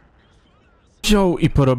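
A man speaks loudly and excitedly into a close microphone.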